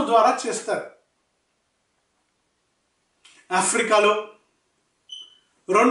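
A middle-aged man speaks calmly and closely into a microphone, in short phrases with pauses.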